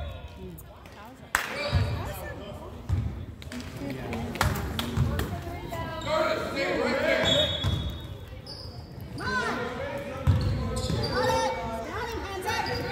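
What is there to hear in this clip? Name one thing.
Adult spectators nearby talk and call out.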